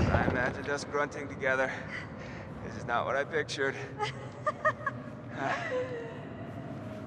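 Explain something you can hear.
A young woman laughs softly, close by.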